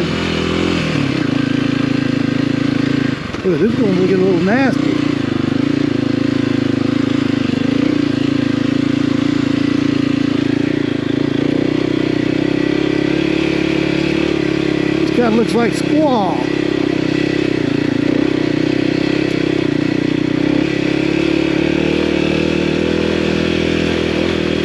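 A motorcycle engine drones steadily close by.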